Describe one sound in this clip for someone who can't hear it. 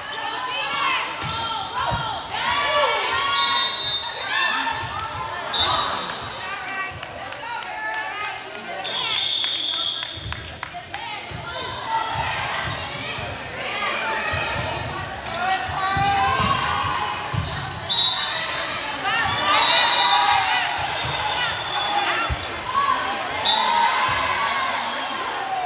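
Young women and spectators call out and cheer in a large echoing hall.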